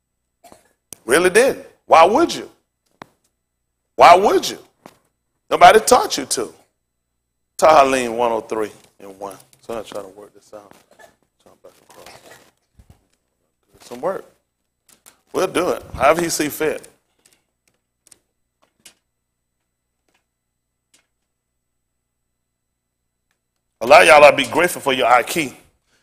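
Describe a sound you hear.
A man speaks with animation through a lapel microphone, pausing between phrases.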